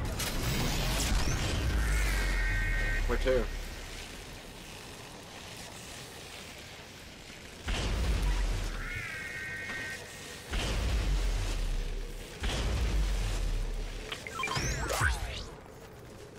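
A glider's engine whooshes through the air.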